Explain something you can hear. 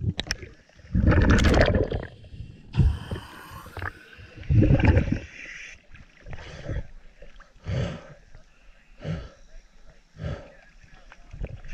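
Water sloshes and laps at the surface.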